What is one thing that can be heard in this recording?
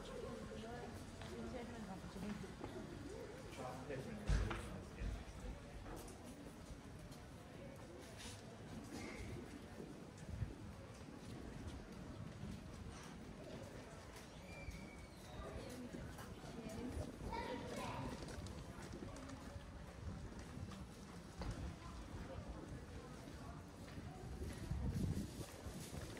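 Footsteps tap on paving in an open pedestrian street.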